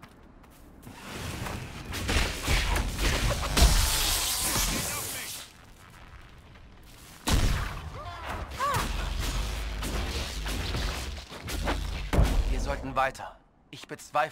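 Magic spells crackle and boom in a fight.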